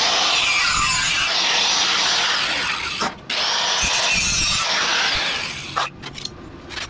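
An angle grinder whines loudly as it cuts metal.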